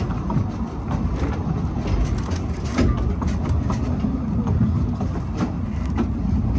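Train wheels click and clack over rail joints.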